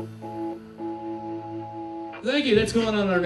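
A band plays a sustained chord on stage.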